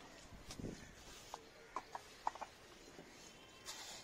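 A trowel scrapes and taps wet concrete.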